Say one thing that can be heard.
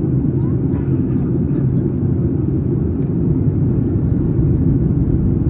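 A jet engine roars steadily in a low, constant drone.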